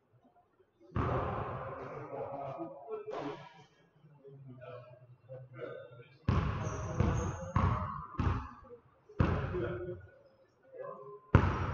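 A basketball bounces hard on a wooden floor, echoing through a large hall.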